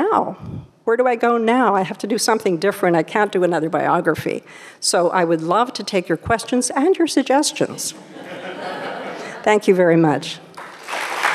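A woman speaks with animation through a microphone in an echoing hall.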